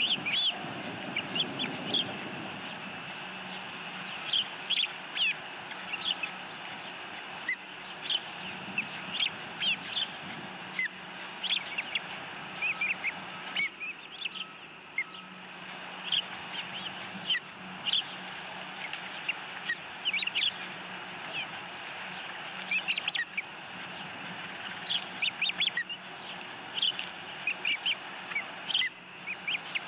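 Osprey chicks chirp and squeal in short, high bursts.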